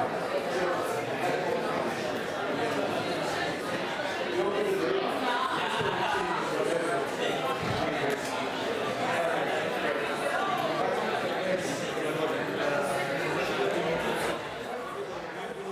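A crowd of young people chatters loudly in an echoing hall.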